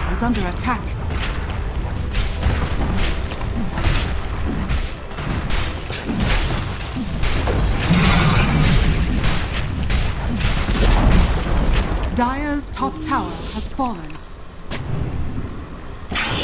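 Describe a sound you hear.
Game weapons clash and strike in rapid hits.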